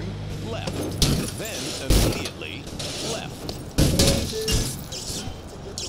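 A car crashes and tumbles with loud metallic bangs.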